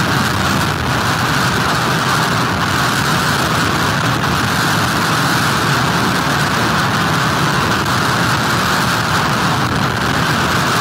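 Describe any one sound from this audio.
Driving rain hisses and lashes down.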